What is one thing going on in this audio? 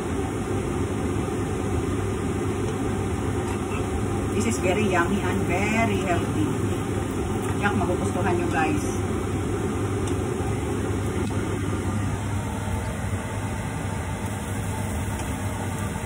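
A metal spatula scrapes against a frying pan.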